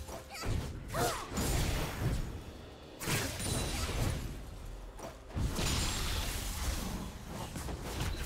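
Spell blasts and weapon hits clash in a busy game battle.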